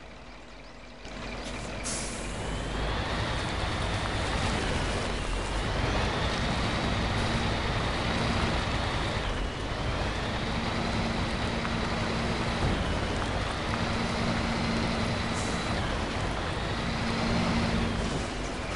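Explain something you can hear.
A heavy truck engine rumbles and whines as the truck drives over rough ground.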